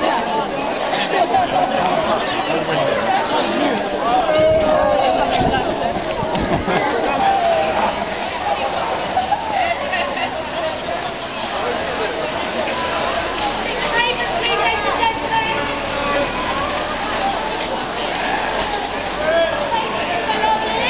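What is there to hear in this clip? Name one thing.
A crowd of men and women chatters and calls out nearby, outdoors.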